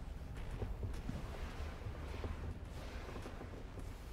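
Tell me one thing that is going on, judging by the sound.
A hand brushes across a bed sheet with a soft rustle.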